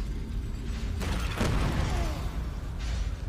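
A loud blast bursts out and roars.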